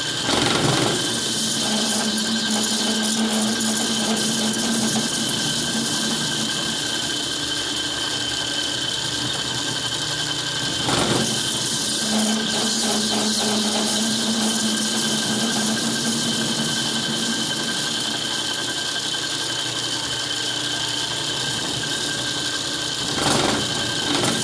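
A cutting tool scrapes against turning metal.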